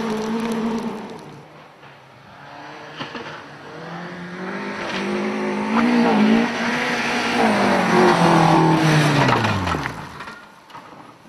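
A rally car speeds past on a gravel track, its engine rising and then falling away.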